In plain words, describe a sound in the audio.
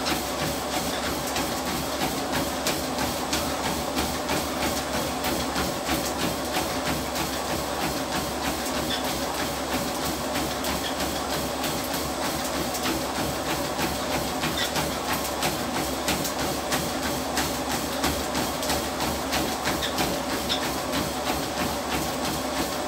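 A treadmill motor hums and whirs steadily.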